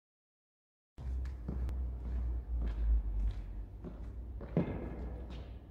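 A man's footsteps thud on a wooden floor in an echoing hall.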